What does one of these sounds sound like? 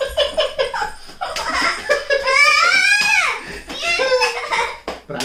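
A young girl shrieks and laughs playfully close by.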